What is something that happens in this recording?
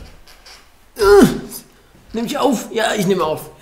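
A young man speaks close to a microphone with animation.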